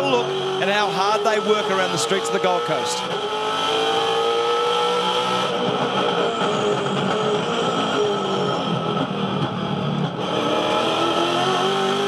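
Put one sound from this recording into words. A race car engine roars loudly, heard from inside the cabin.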